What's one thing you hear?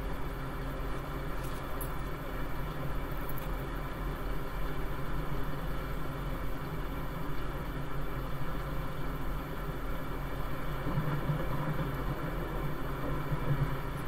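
A woman shuffles a deck of cards.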